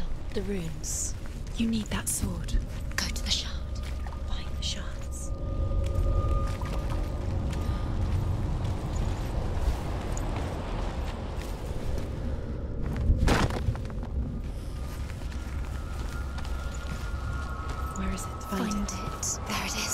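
Footsteps crunch on gravel and sand.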